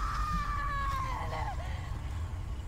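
A woman cries out in anguish.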